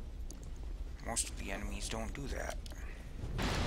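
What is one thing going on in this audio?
A young man speaks casually close to a microphone.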